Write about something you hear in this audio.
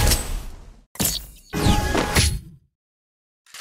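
A short victory jingle plays.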